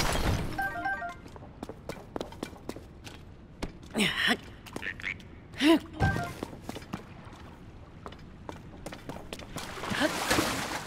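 Quick footsteps patter on rough ground.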